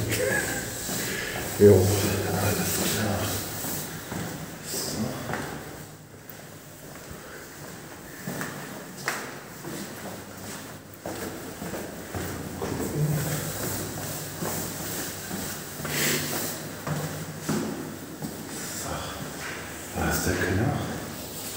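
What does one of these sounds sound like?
A man talks casually, close to a phone microphone.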